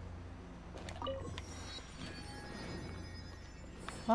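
A bright magical chime rings out and shimmers.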